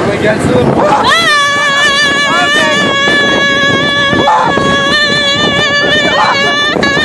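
Riders scream loudly and excitedly as the coaster drops.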